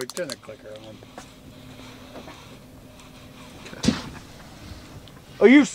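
A fishing reel clicks as line is pulled out.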